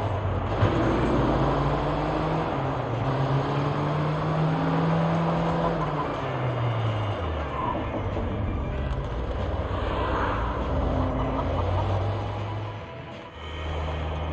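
A vehicle engine hums and revs up and down as it drives.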